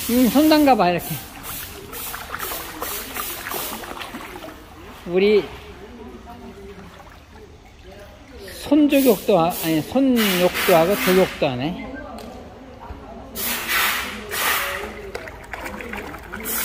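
Water splashes softly as a small child paddles her hands and feet.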